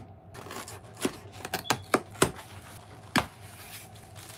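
Packing tape rips off a cardboard box in sharp bursts.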